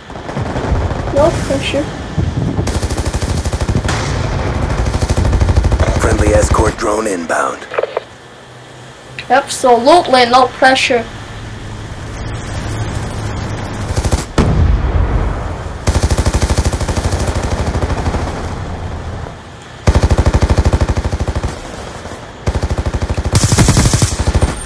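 A rapid-fire gun shoots in long, fast bursts.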